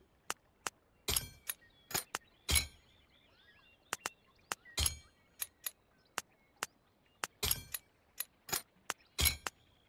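Sharp clicks sound again and again at an uneven pace.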